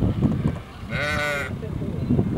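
A seal gives a short moaning call.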